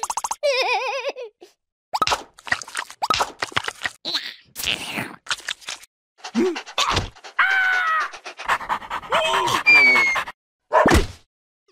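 A small cartoon creature babbles and squeals in a high, comic voice.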